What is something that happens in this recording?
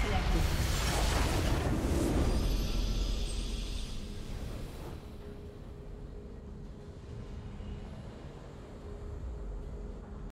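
A triumphant victory fanfare plays and fades.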